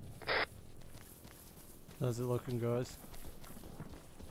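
Footsteps crunch over dry grass and gravel.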